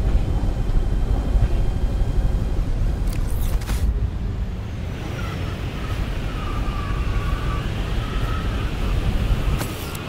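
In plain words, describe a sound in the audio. A strong wind rumbles and blows steadily.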